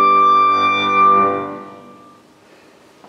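A piano chord rings out and slowly fades.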